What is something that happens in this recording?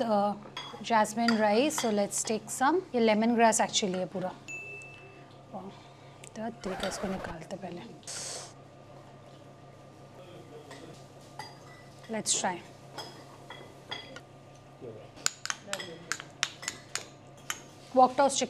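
A metal spoon clinks against a bowl.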